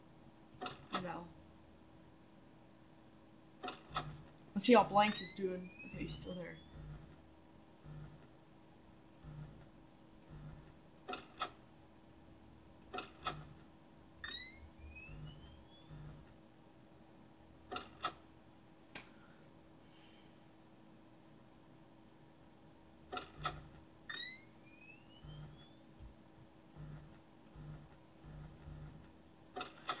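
Short electronic clicks and rising chirps play through small desktop speakers.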